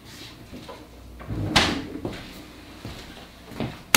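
A refrigerator door thumps shut.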